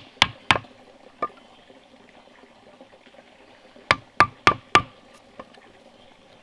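A wooden mallet strikes a chisel into bamboo with sharp knocks.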